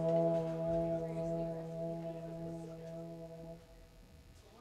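An electric guitar holds a loud chord that rings and then stops.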